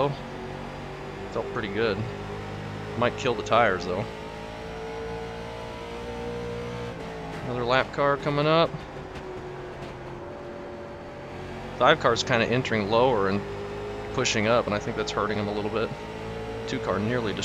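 A racing car engine drones steadily at high speed.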